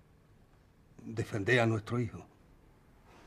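A middle-aged man answers in a low, calm voice.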